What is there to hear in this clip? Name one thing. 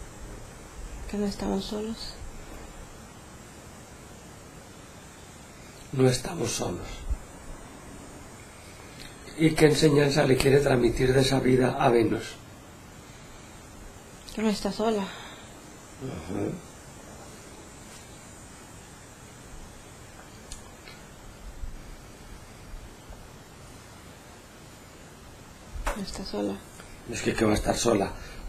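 A woman speaks softly and slowly, in short phrases with long pauses.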